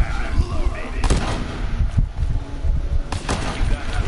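An energy weapon fires with sharp zaps.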